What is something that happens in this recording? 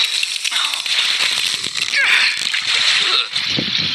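Water splashes as a boot is pulled from a lake.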